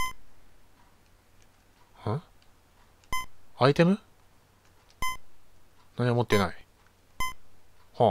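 Short electronic menu blips beep now and then.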